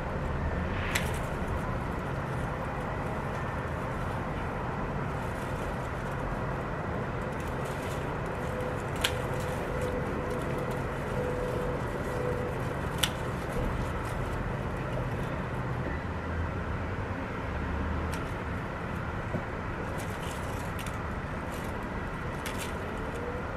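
Garden shears snip stems sharply, now and then.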